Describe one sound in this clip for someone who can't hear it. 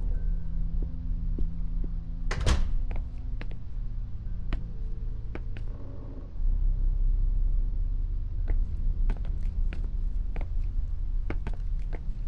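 Footsteps thud slowly across a hard floor.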